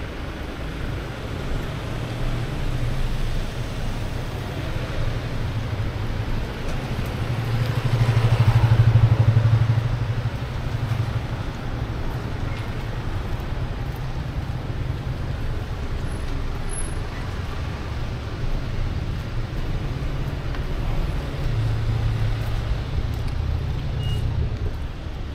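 Traffic rumbles steadily along a nearby street.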